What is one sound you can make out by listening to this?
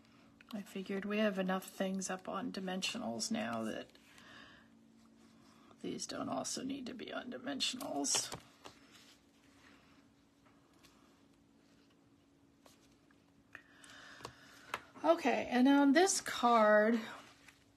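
Paper rustles and slides softly under hands.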